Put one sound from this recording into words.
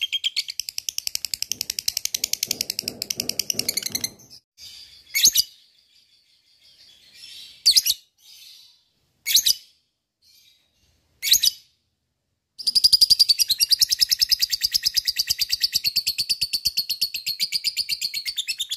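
A small parrot chirps in fast, shrill, buzzing trills close by.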